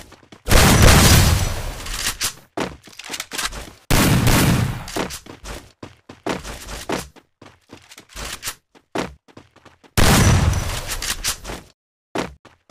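Heavy booming thuds hit and rumble away.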